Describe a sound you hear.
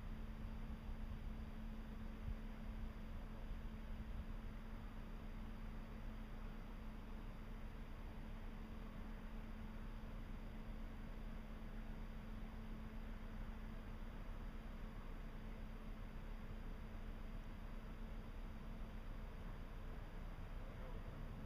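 A large ship's engine hums steadily in the distance.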